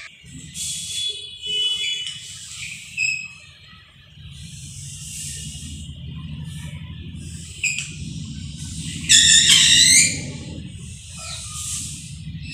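Chalk scrapes and squeaks on a blackboard.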